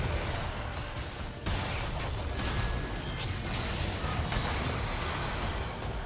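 Blows and magic blasts hit with sharp bursts.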